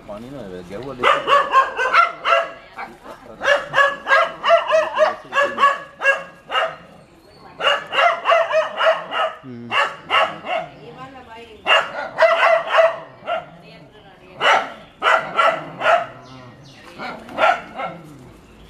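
A dog barks rapidly and excitedly in short bursts.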